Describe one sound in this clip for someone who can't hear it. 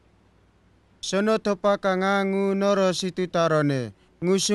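A man speaks slowly and solemnly, close by.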